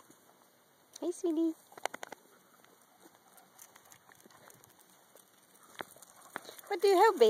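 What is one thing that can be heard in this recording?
A dog gives short high whines close by.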